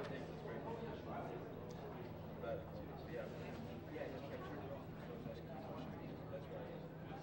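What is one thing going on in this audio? A crowd of men and women chatter nearby in an indoor hall.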